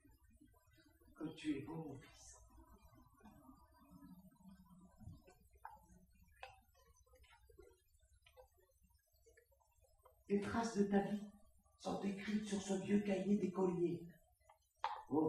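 Paper rustles in an elderly woman's hands.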